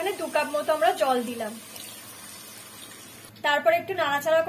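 Water pours into a pan of simmering food.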